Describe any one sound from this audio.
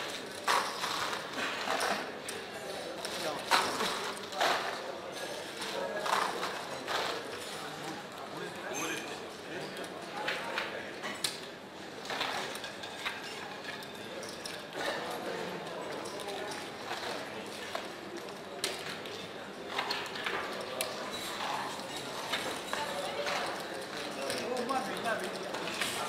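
Plastic chips clack and clatter as they are gathered and stacked.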